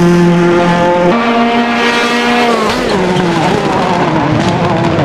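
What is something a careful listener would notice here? A rally car engine roars at high revs, its pitch jumping and dropping as it shifts gears.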